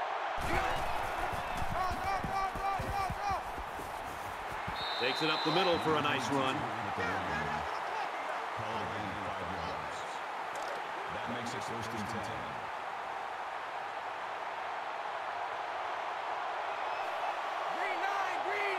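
A large crowd cheers steadily in a stadium.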